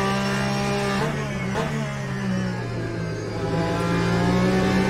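A race car engine drops in pitch as the car slows for a corner.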